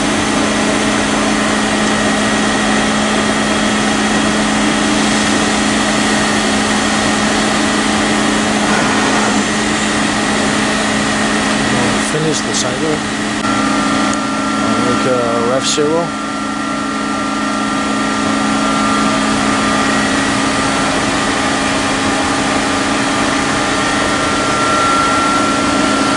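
A machine hums steadily with a loud motor drone.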